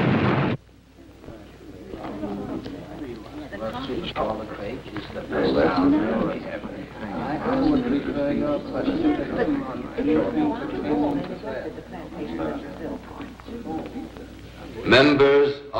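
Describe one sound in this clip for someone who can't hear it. A crowd of men murmurs in a large hall.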